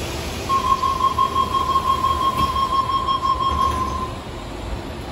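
A warning tone beeps rapidly.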